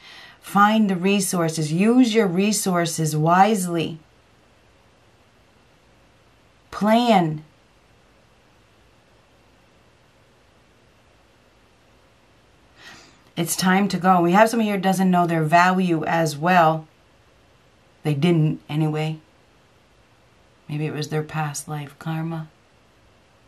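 An elderly woman speaks close to a microphone, with long pauses between her words.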